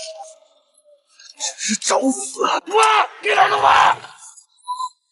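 A young man speaks sharply and loudly.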